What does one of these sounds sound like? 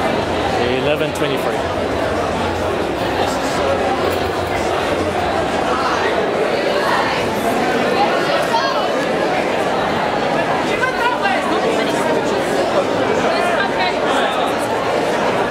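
A large crowd of people chatters all around in a large echoing hall.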